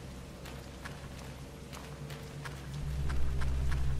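Footsteps run over rough ground.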